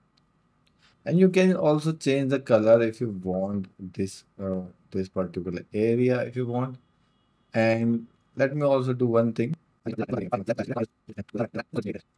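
A man speaks calmly and close to a microphone.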